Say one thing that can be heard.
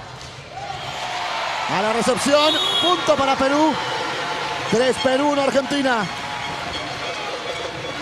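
A large crowd cheers loudly in an echoing hall.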